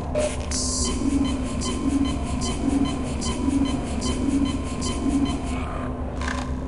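A medical station hums and pulses as it recharges health.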